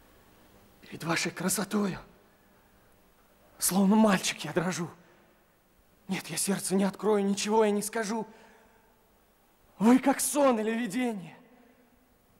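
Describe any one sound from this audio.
A young man sings out loud, in phrases with short pauses between them.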